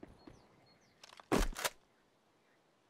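A rifle is drawn and cocked with quick metallic clicks.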